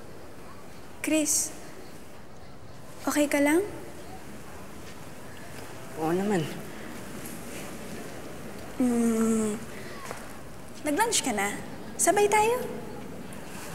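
A young girl speaks softly and brightly, close by.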